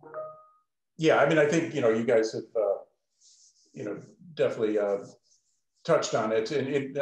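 A middle-aged man speaks earnestly over an online call.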